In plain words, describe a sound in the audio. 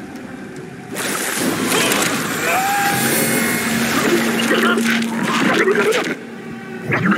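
A man screams in agony.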